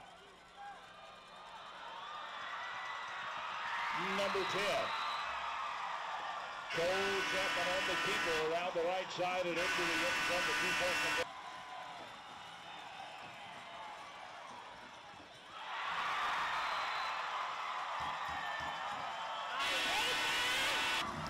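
A large crowd cheers loudly in an open stadium, swelling and fading.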